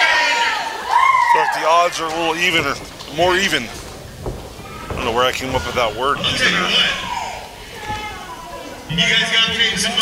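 A middle-aged man shouts into a microphone through loudspeakers.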